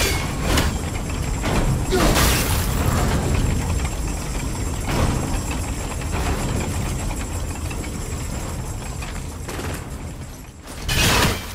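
A huge metal wheel grinds and rumbles as it turns.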